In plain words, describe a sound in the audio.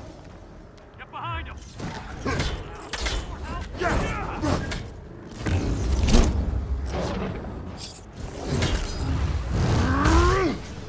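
Energy blasts whoosh and crackle in a video game fight.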